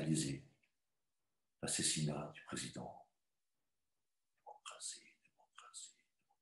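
A middle-aged man speaks calmly through an online call, in short bursts with pauses.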